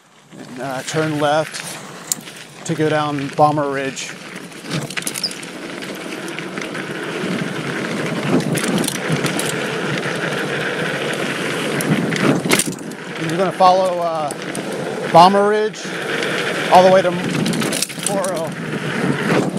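Bicycle tyres crunch and rumble over a loose dirt trail.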